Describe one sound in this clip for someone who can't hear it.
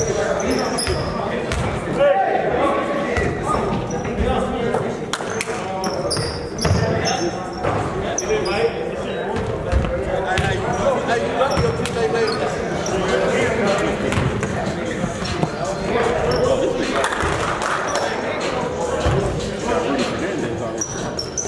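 A basketball bounces on a wooden floor in a large echoing hall.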